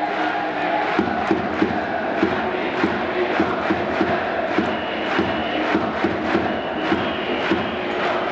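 Fans clap and bang noisemakers in a steady rhythm.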